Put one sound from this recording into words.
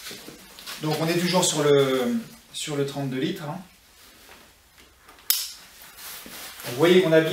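A man speaks calmly and clearly close to a microphone.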